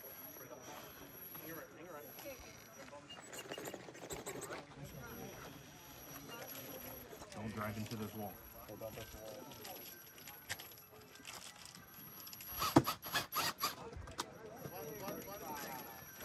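A small electric motor whirs as a toy truck crawls over rock.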